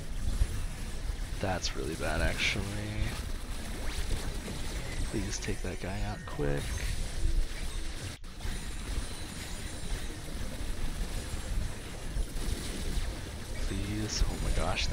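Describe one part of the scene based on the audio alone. Magic blasts and zaps crackle and whoosh in a busy fight.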